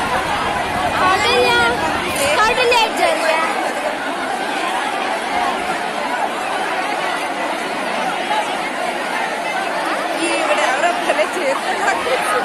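Men shout excitedly close by.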